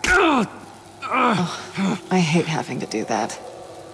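A young woman speaks in a tired, regretful voice.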